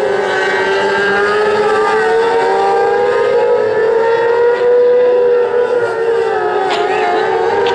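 Several race car engines roar loudly around a dirt track.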